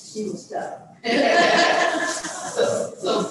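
Several women laugh together.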